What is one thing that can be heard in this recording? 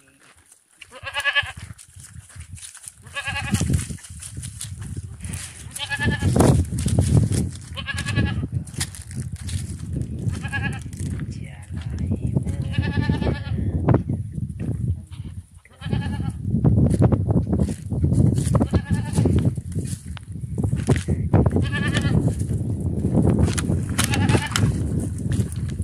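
A goat bleats loudly and repeatedly, close by.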